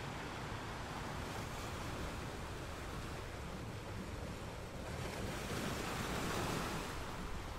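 Ocean waves crash and roll steadily.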